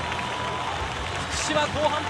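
A crowd claps and cheers in a large open stadium.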